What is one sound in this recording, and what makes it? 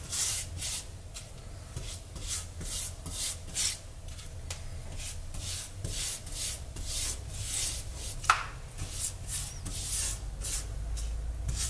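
A spatula smears thick paste with soft rhythmic swishes.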